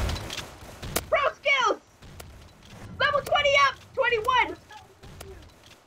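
A shotgun fires sharp shots.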